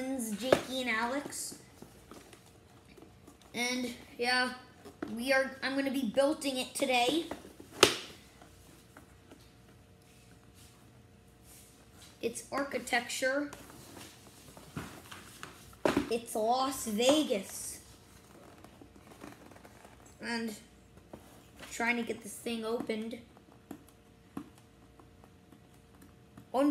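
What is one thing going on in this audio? A cardboard box scrapes and taps on a wooden floor.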